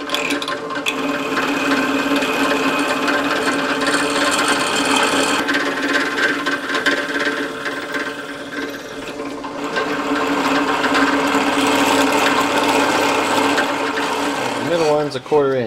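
A cutter grinds into metal with a harsh rasp.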